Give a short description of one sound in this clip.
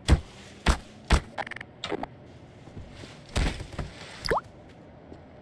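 A crowbar thuds against a soft toy.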